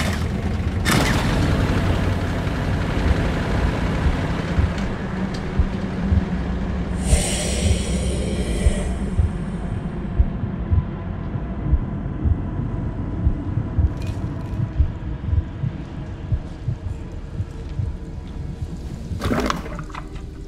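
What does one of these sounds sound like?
A generator engine rumbles steadily.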